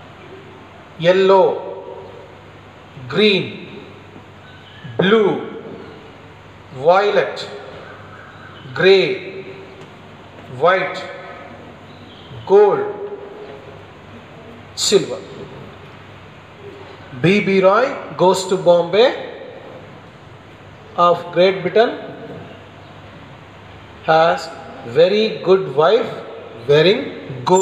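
A man speaks clearly and steadily in short phrases, close by.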